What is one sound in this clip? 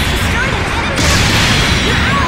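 An explosion booms close by.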